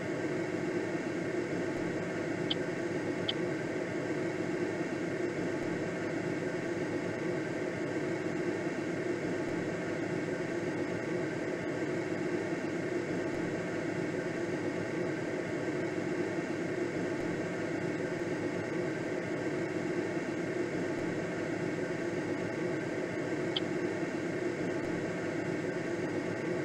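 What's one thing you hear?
Wind rushes steadily past a gliding aircraft.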